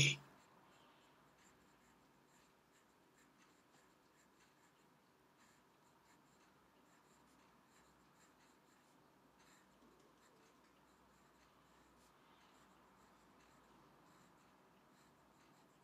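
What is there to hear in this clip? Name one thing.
A fountain pen nib scratches softly across paper.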